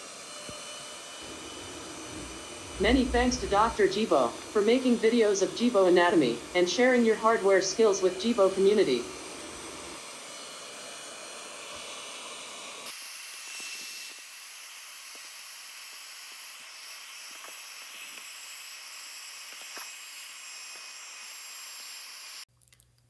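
Small cooling fans whir steadily.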